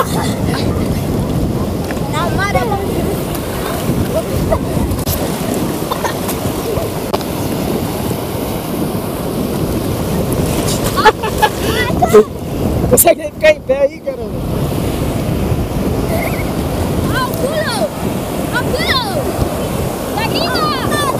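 Sea water sloshes and splashes close by.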